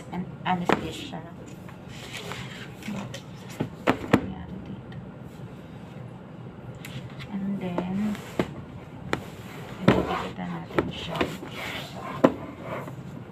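A book knocks and taps against a desk.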